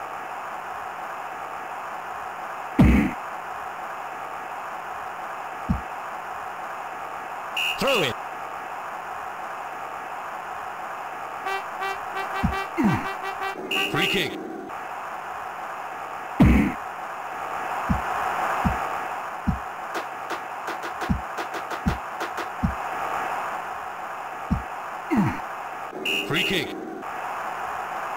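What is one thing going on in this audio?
A steady crowd hum drones from a video game's football match.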